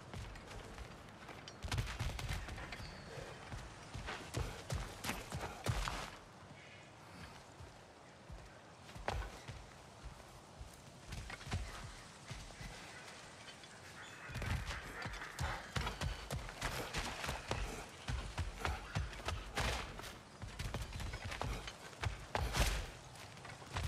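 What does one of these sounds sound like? Heavy footsteps thud on stone and wooden planks.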